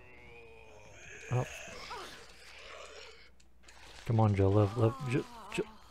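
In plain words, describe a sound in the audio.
A zombie groans and bites with wet tearing sounds.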